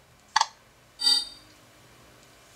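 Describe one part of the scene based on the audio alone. A short electronic chime rings out from a phone's speaker.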